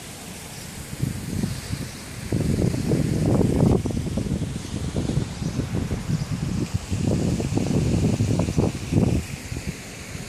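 A car drives past nearby with a low rumble.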